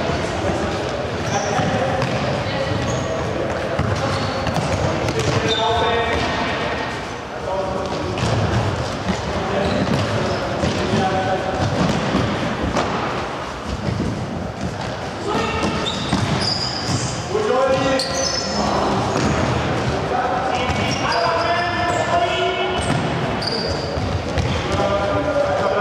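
Children shout and call out across a large echoing sports hall.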